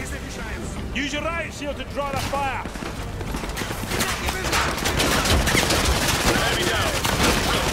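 Bullets strike a shield with sharp cracks.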